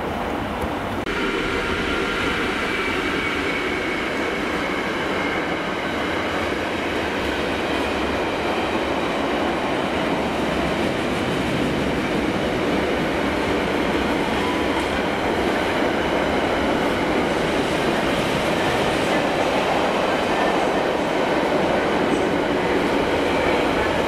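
A freight train thunders past close by with heavy rumbling.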